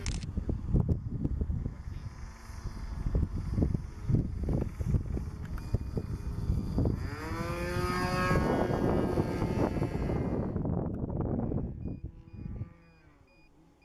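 A model airplane engine buzzes as the plane flies by, rising and falling in pitch.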